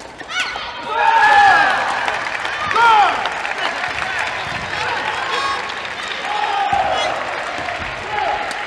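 Young men shout and cheer in an echoing hall.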